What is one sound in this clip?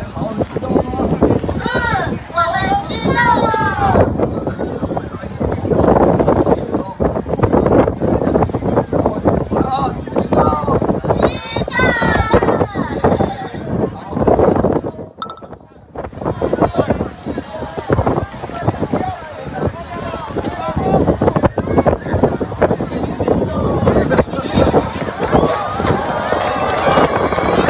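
A large crowd shouts and talks loudly outdoors.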